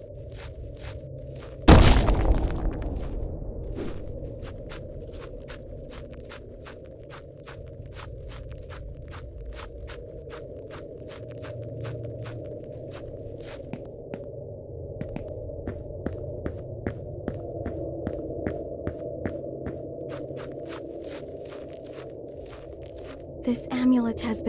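Footsteps crunch steadily on a forest path.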